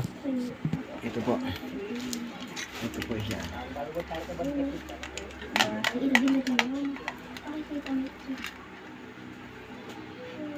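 Plastic wrapping crinkles in a man's hands.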